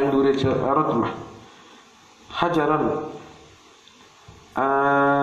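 An elderly man chants in long, drawn-out phrases in an echoing room.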